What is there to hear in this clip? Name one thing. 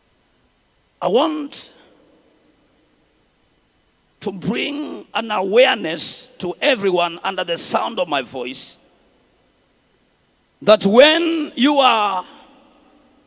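A young man speaks with animation through a microphone in a large echoing hall.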